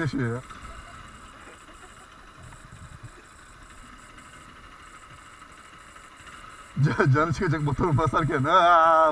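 A motorcycle engine idles close by.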